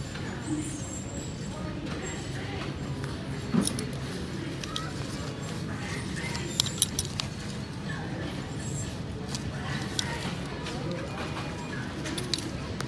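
Fabric rustles as garments are pushed aside.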